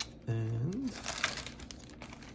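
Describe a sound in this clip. Plastic wrapping crinkles.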